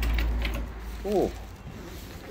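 A dog whines briefly.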